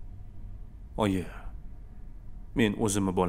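A young man speaks quietly in reply.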